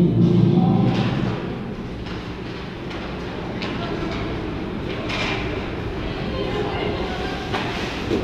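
Skate blades scrape across the ice in a large echoing rink.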